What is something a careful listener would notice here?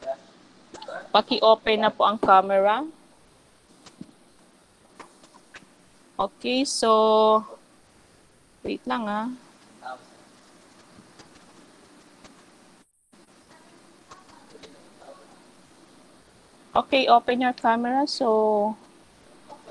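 A young woman speaks in short bursts over an online call.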